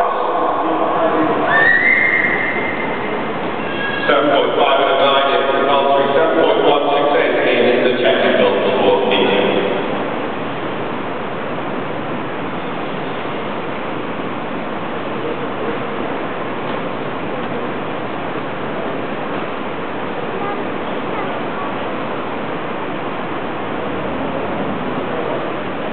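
A horse's hooves thud softly on sand as it trots in circles.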